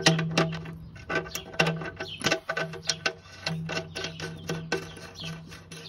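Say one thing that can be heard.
Fingers turn a metal bolt with faint scraping clicks.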